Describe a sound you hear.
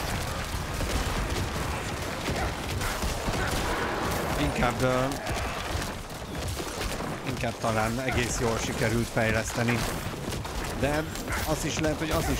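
Game combat sounds crash and clatter throughout.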